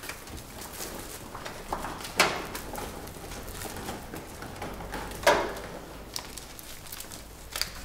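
Paper rustles as letters are sorted by hand.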